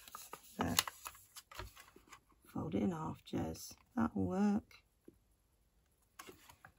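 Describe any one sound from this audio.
A paper trimmer blade slides and cuts through paper.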